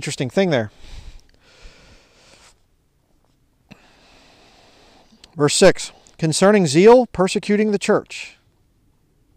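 A man reads aloud from a book close by.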